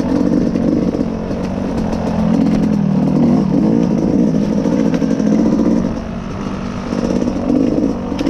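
A dirt bike engine revs and drones loudly up close, rising and falling.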